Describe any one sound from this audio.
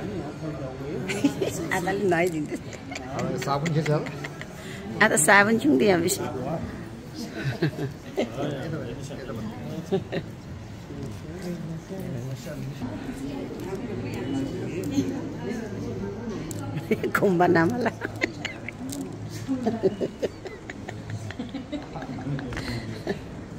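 Men and women talk and murmur nearby in a crowd.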